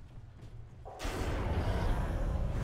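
Weapons clash and strike loudly in a fight.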